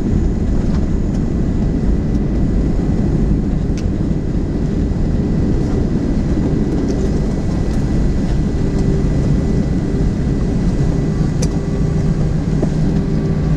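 An aircraft's engines roar steadily as it rolls along a runway.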